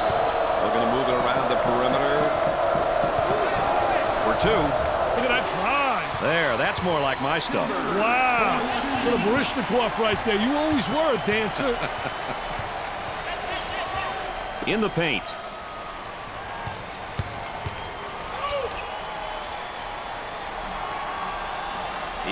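A large crowd roars and murmurs in a big echoing arena.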